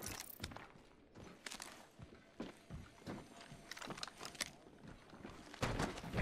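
Footsteps clank quickly across a metal floor in a video game.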